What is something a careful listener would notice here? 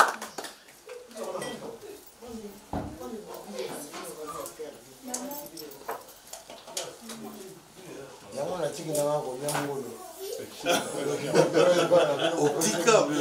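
Several men talk with animation close by.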